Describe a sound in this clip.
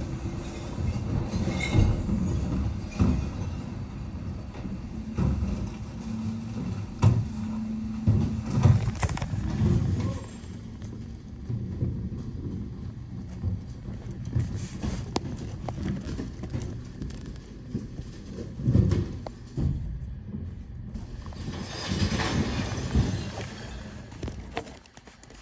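A bin lorry's engine idles nearby with a steady low rumble.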